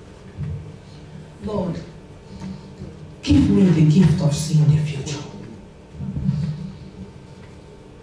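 A young woman speaks calmly into a microphone, with pauses.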